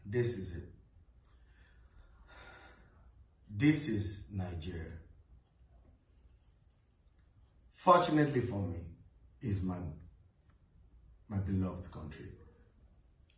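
A man speaks calmly nearby in short phrases, with pauses.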